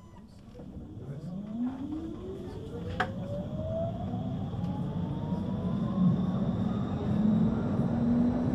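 A tram's electric motor whines and rises in pitch as the tram pulls away and speeds up.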